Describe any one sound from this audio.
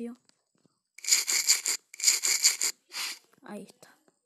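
A toothbrush scrubs teeth with quick rasping strokes.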